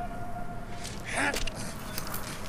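A man groans in pain up close.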